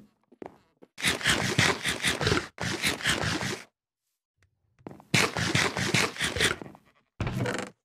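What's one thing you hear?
A game character munches food with loud crunching bites.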